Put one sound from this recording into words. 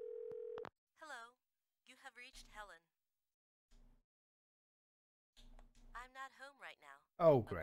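A woman's recorded voice speaks calmly through an answering machine speaker.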